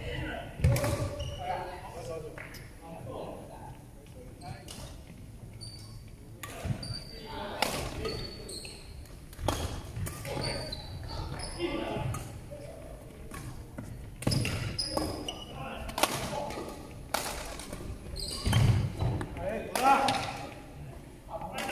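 Sports shoes squeak sharply on a wooden court.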